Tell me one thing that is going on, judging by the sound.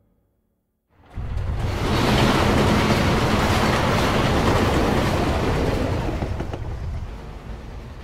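A train roars loudly past, rumbling and rattling.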